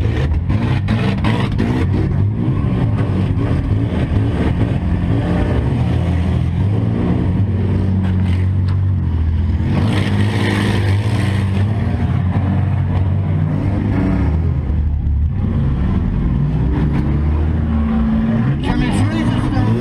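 A car engine roars loudly from inside the cabin.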